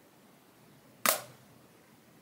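A plastic game case clicks as it is handled.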